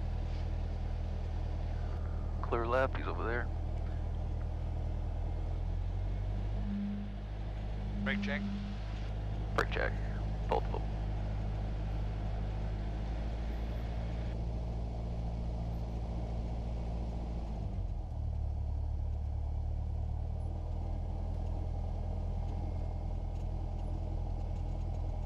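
A small propeller plane's engine drones steadily, shifting pitch partway through.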